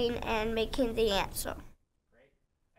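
A young girl speaks with animation close by.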